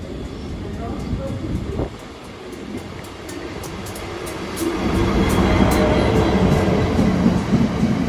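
A diesel locomotive approaches and roars past close by.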